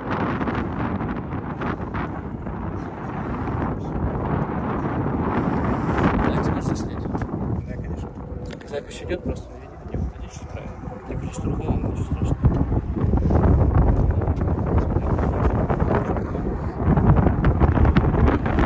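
Wind gusts and rumbles loudly across a microphone outdoors.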